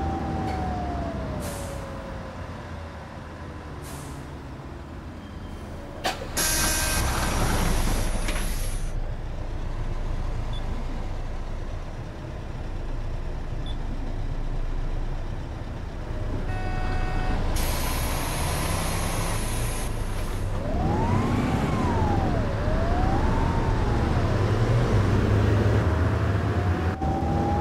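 A bus engine hums and rumbles steadily.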